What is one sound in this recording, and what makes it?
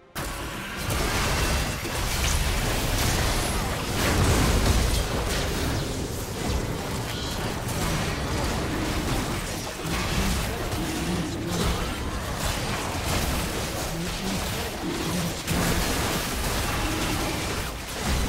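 Game spell effects whoosh, crackle and clash in a fast fight.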